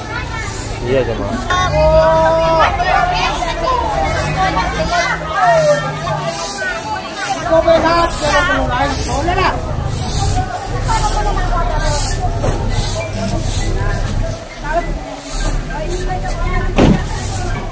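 A broom sweeps the ground with brisk scratching strokes.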